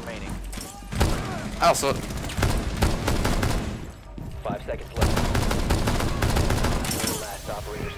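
Rifle shots crack in rapid bursts close by.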